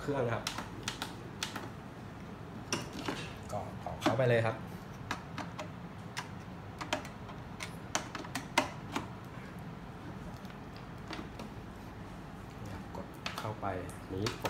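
Hands tap buttons on a plastic machine.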